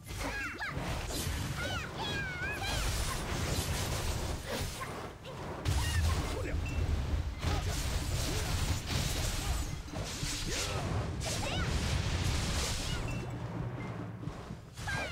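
Spell blasts and sword strikes crash and boom in a game fight.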